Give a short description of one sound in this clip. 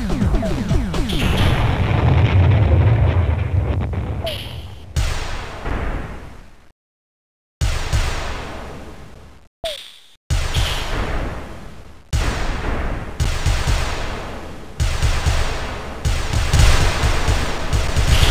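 Laser shots zap in quick bursts.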